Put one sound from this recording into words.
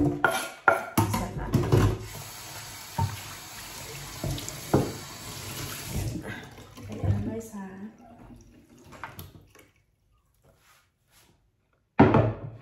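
Food scraps knock and scrape off a wooden board into a bin.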